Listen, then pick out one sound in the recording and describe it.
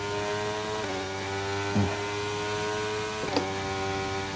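A racing car engine's pitch drops sharply as the gear changes.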